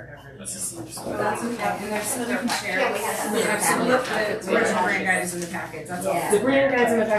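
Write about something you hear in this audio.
Several women talk over one another with animation.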